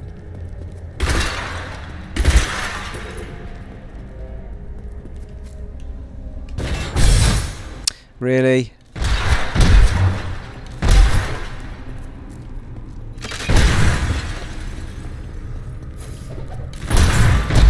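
Game spells blast and crackle in sudden bursts.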